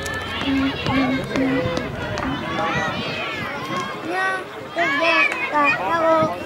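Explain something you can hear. A crowd of young children chatters and shouts outdoors.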